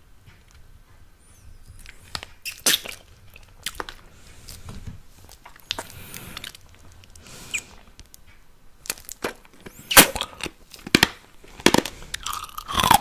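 A man makes wet sucking and clicking mouth sounds very close to a microphone.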